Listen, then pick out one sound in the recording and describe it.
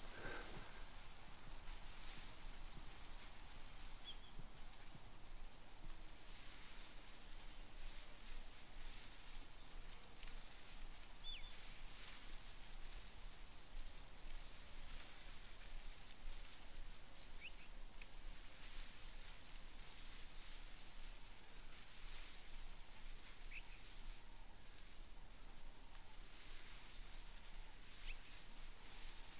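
A light breeze rustles through leafy bushes outdoors.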